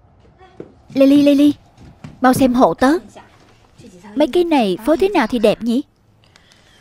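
A young woman calls out a name and then speaks with animation.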